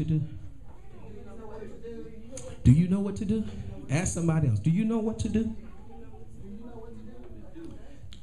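A man speaks loudly through a microphone in a room with some echo.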